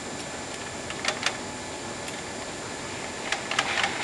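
A metal tool clicks and knocks against the press.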